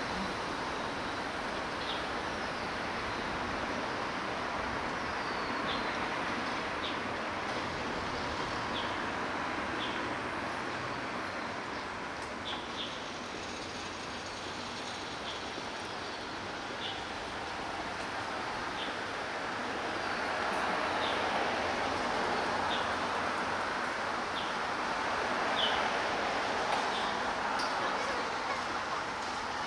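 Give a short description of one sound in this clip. Traffic hums steadily along a street outdoors.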